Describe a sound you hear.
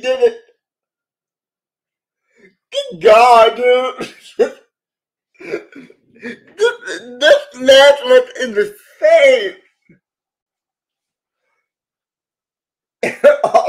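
A middle-aged man talks and laughs with animation over an online call.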